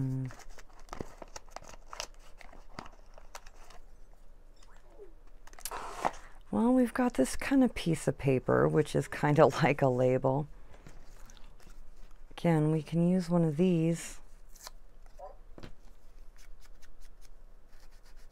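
Paper rustles and scrapes as it is handled.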